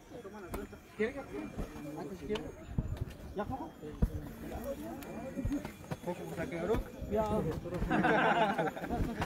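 Several men and women talk nearby outdoors.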